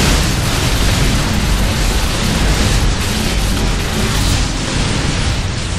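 Energy blasts crackle and roar loudly.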